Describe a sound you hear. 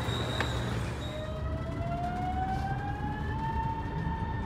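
A subway train's motor whines and rises in pitch.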